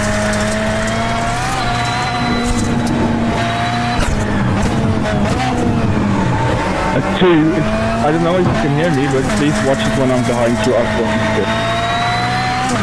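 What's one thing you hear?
A racing car engine drones loudly and steadily at high speed.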